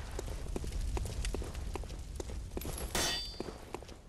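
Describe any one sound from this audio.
Footsteps patter quickly on wet stone.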